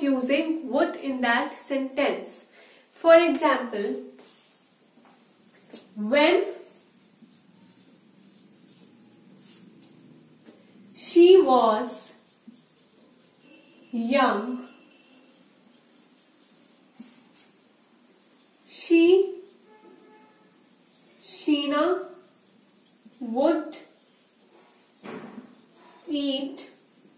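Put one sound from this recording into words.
A young woman speaks calmly and clearly into a nearby microphone, in short phrases with pauses.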